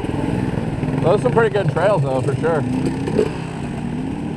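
A man talks loudly over engine noise.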